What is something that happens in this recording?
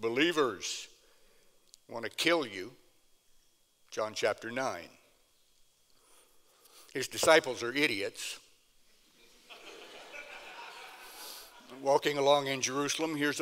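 An elderly man speaks in short phrases through a microphone, with pauses.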